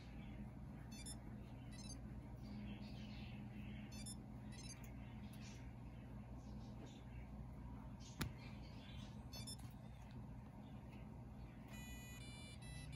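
A small electronic toy plays short, chirpy beeping tunes.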